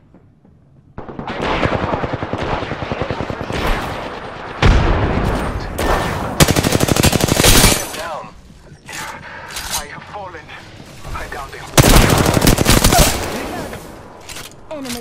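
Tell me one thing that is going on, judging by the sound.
A gun fires in rapid bursts, loud and close.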